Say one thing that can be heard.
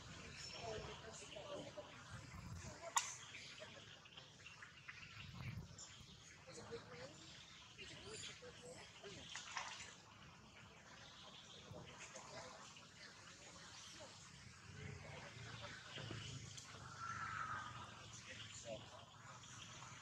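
Water splashes and sloshes as monkeys swim and wrestle.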